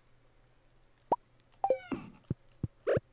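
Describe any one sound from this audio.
A short game menu chime plays as a menu closes.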